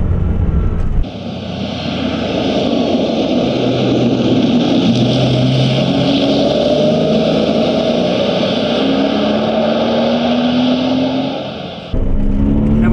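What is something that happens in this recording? A sports car engine revs and roars as the car approaches and passes.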